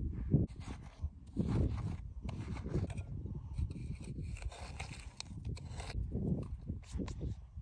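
A metal tool scrapes and crunches into a hard salt crust.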